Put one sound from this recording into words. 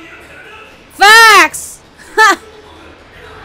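A young woman squeals loudly and excitedly close to a microphone.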